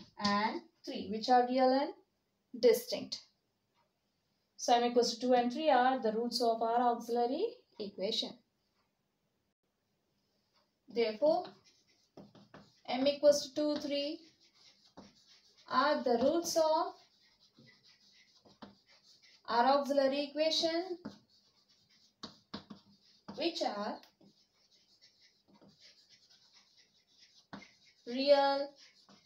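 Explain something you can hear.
A young woman explains calmly in short phrases, close by.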